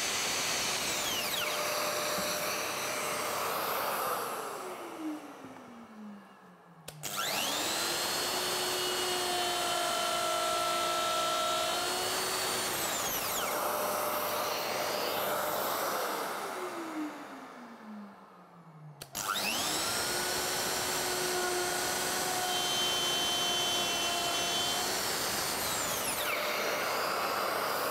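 A power router whines loudly, twice winding down and spinning back up.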